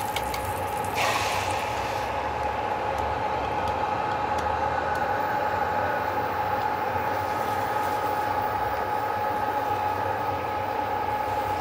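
Beaten eggs pour into a hot pan and sizzle.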